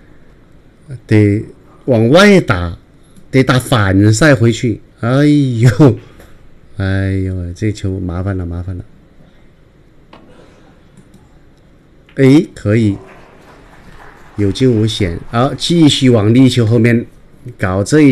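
A middle-aged man commentates calmly through a microphone, in bursts.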